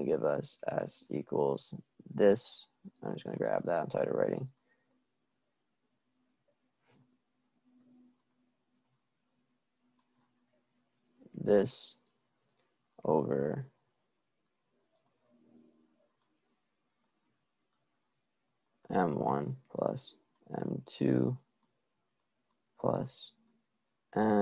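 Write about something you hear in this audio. A young man speaks calmly into a close microphone, pausing often.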